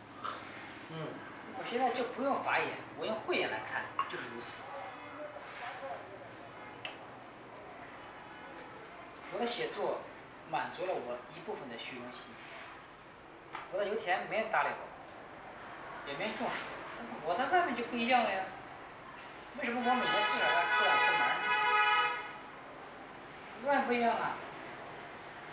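A young man talks calmly and close by, with pauses.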